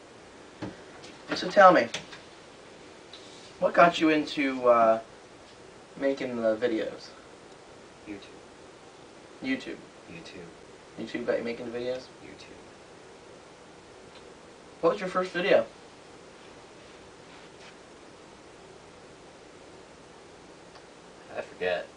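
Two young men talk in short bursts, with pauses in between.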